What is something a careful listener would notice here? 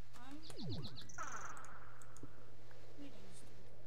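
A block cracks and breaks with a short crunch.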